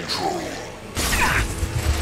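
An energy blast whooshes and crackles.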